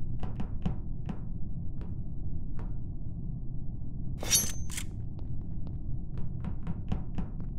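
Light footsteps patter in quick, uneven steps.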